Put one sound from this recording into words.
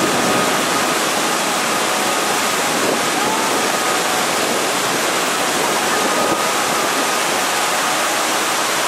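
Rapids roar and crash loudly close by.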